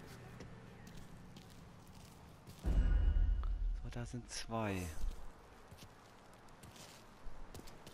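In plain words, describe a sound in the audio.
Footsteps cross pavement.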